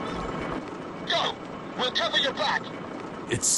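A man calls out urgently.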